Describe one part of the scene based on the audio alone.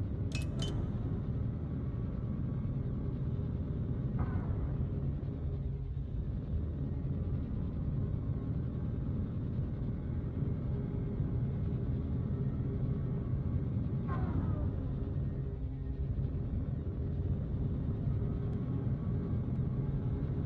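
A spacecraft's engines rumble with a deep, steady hum.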